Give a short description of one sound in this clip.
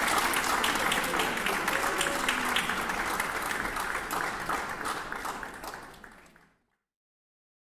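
An audience applauds in a large hall, then the applause fades away.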